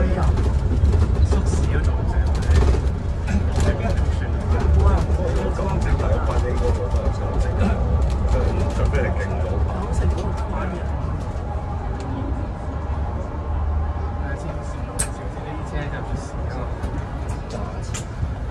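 The bus interior rattles and clicks as it moves.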